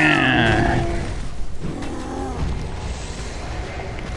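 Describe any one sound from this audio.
Heavy blows strike and thud in a fierce fight.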